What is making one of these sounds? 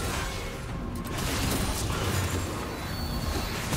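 A short game chime sounds.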